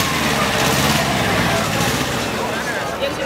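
A small tractor engine chugs loudly close by.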